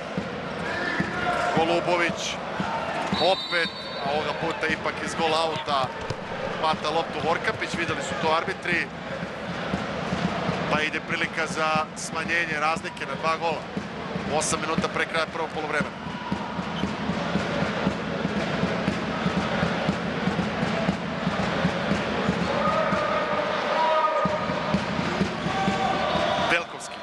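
A large crowd cheers and chants loudly in an echoing hall.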